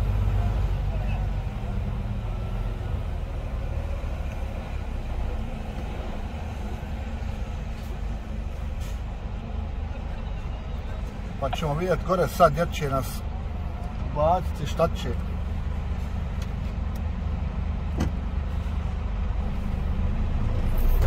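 A truck engine rumbles low and steady from inside the cab.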